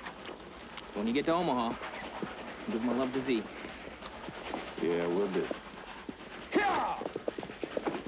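Two men talk calmly on horseback nearby.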